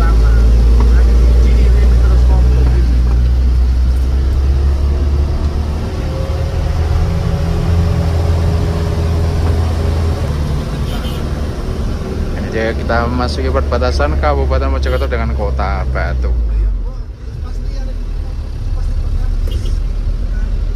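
A truck engine hums and labours steadily uphill.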